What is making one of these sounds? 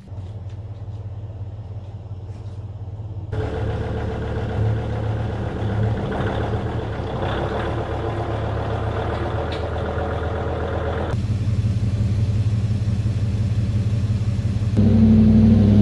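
A vehicle engine idles nearby outdoors.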